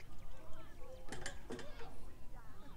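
Wooden poles knock and clatter to the ground.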